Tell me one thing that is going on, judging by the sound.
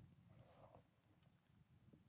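A bowstring creaks softly as an archer draws a bow.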